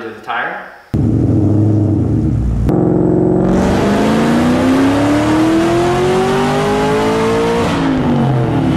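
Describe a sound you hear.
A car engine idles with a deep, loud rumble, then revs up.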